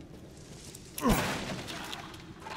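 A wooden barrel smashes apart with a loud crack.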